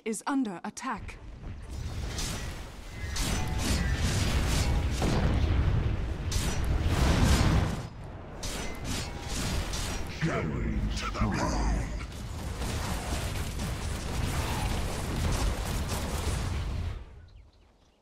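Game battle effects whoosh, crackle and thud.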